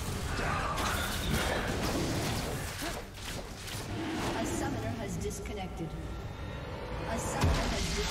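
Spell and attack effects clash in a video game battle.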